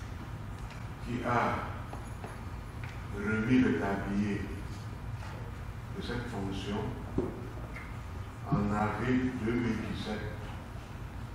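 A man speaks with animation in short bursts, echoing in a large room.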